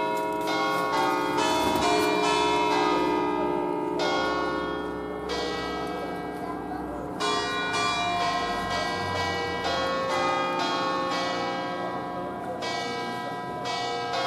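Several church bells swing and ring loudly in a fast, overlapping peal.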